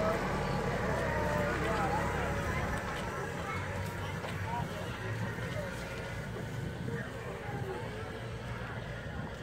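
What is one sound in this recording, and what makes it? A compact tractor's engine rumbles as it pulls a wagon away.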